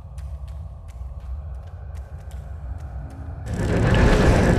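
Footsteps tap softly on a stone floor.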